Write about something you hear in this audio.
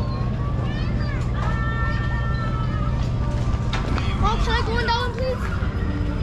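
A young boy talks close by.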